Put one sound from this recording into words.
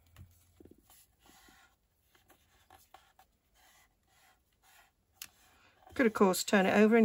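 Paper crinkles and rustles softly as it is folded.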